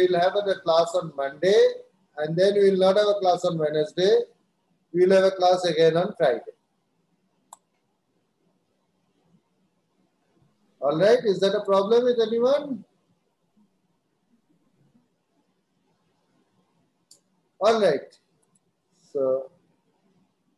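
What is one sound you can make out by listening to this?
A middle-aged man speaks calmly in short bursts through an online call.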